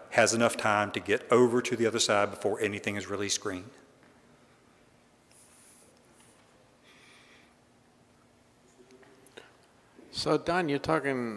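A middle-aged man speaks with animation into a microphone, in a large echoing hall.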